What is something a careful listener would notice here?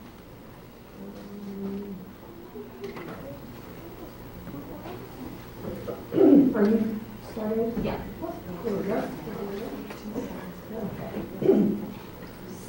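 An elderly woman speaks calmly in a room with a light echo.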